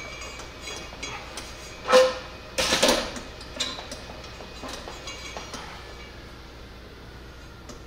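A cable rattles and scrapes against metal.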